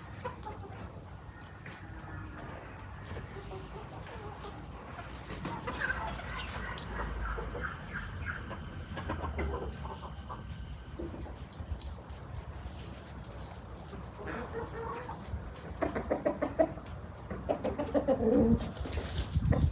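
Hens cluck while pecking in the grass.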